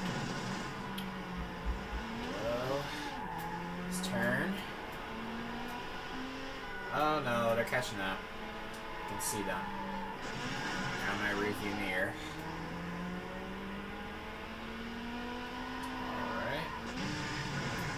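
A racing car engine revs and roars, rising and falling in pitch as gears change.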